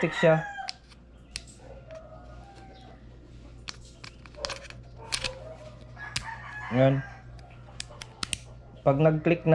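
Small plastic parts click and snap together in someone's hands.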